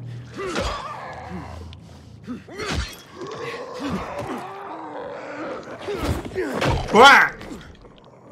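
Heavy blows thud and smack into flesh.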